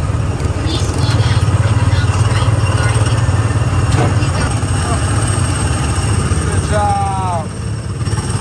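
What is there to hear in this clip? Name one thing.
A small car's motor rumbles steadily as it rolls along a track.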